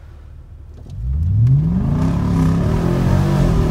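A car engine rumbles and revs up as the car drives off.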